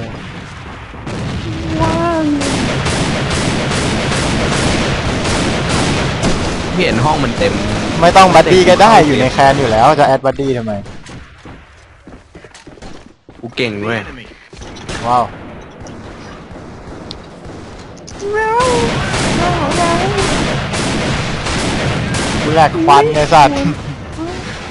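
Sniper rifle shots crack loudly.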